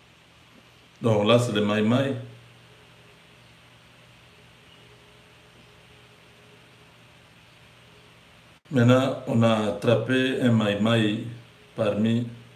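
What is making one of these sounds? A man speaks calmly close to the microphone, in short bursts with pauses.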